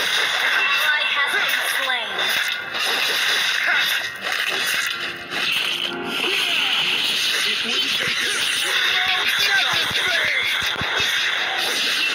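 Blades slash and clash in a fast fight.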